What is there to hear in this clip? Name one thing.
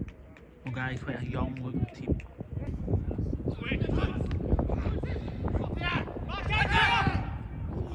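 Young players shout to each other across an open pitch outdoors.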